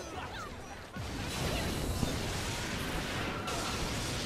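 Electric crackling bursts out during a fight.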